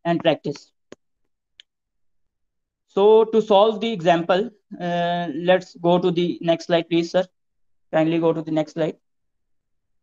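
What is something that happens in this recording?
A young man speaks calmly through a microphone, as if lecturing on an online call.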